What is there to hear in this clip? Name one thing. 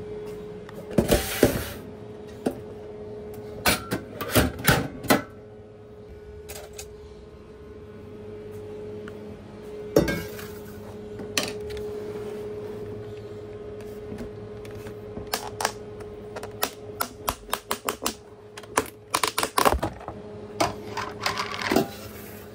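Metal containers clatter and clank against a steel counter.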